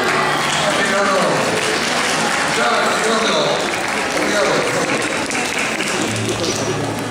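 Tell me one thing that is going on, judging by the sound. A crowd of children and adults cheer and shout excitedly in a large hall.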